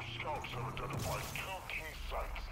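Gunfire cracks in a video game.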